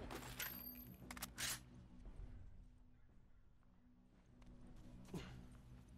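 Footsteps run quickly through grass and brush.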